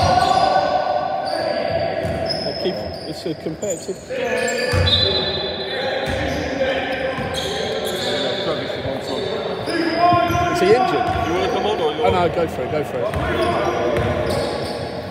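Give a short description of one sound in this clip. Young men shout and call out to one another across the hall.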